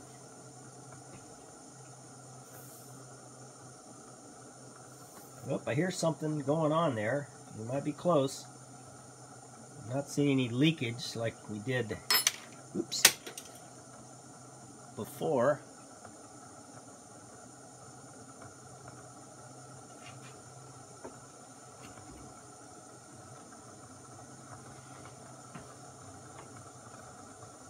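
A gas burner hisses steadily under a coffee pot.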